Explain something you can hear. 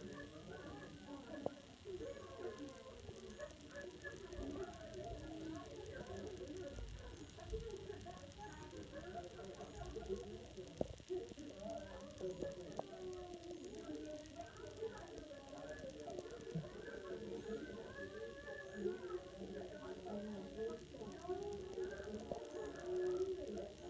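A woman laughs, heard through a television speaker.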